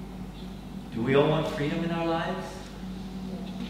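A middle-aged man speaks through a microphone in a large echoing hall.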